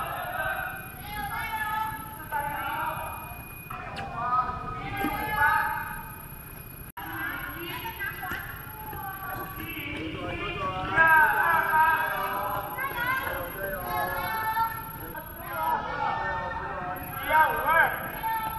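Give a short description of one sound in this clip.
A woman cheers loudly outdoors.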